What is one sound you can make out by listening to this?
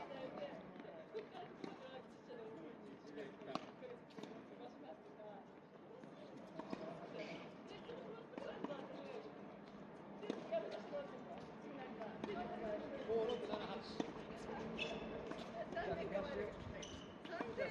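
Tennis balls are struck with rackets, making sharp pops outdoors.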